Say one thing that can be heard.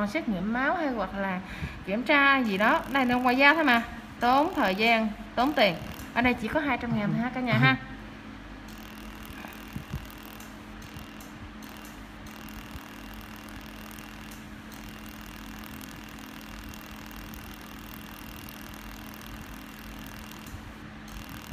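A small electric tool hums steadily close by.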